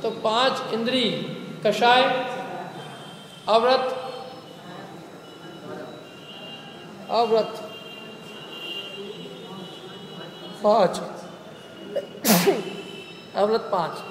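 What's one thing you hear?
A man sings into a microphone in short bursts, with pauses between phrases.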